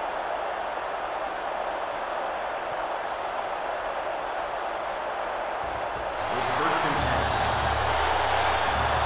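A stadium crowd roars steadily, swelling louder toward the end.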